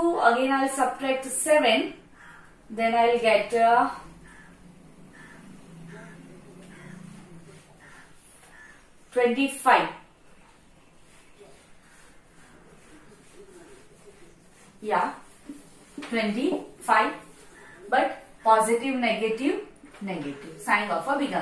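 A woman speaks calmly and clearly, explaining, close by, with pauses.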